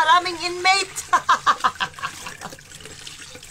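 A middle-aged woman laughs loudly close up.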